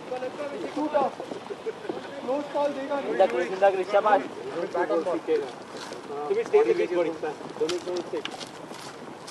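Men call out and talk at a distance outdoors.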